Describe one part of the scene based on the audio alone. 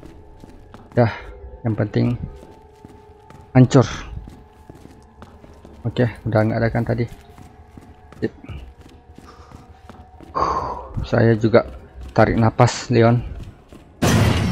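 A man talks with animation close to a microphone, in short bursts.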